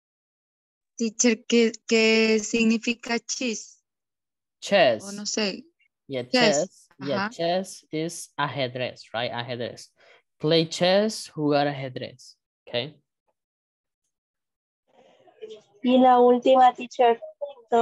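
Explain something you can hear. A young man speaks clearly over an online call, pausing between phrases.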